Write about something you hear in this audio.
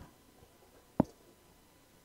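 A basketball bounces once on a wooden gym floor.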